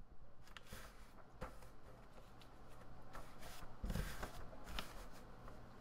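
Hands softly press and knead a lump of clay.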